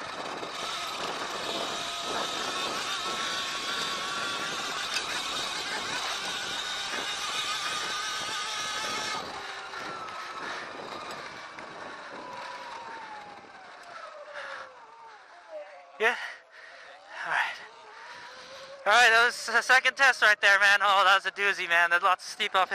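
A motorcycle engine revs and drones, then slows and eases off.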